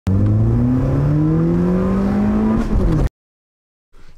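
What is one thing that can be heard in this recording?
A car engine revs up and rises in pitch.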